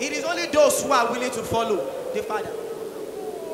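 A man speaks with animation through a microphone over loudspeakers.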